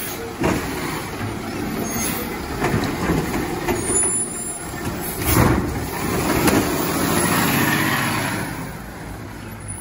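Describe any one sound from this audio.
A garbage truck's mechanical arm whirs and hisses as it lifts and dumps a bin.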